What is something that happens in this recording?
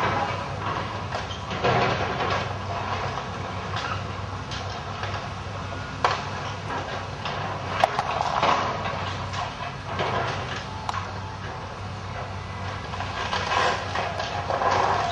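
Debris cracks, crunches and clatters as an excavator tears at a building.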